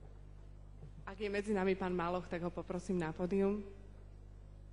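A woman speaks calmly through a microphone and loudspeakers.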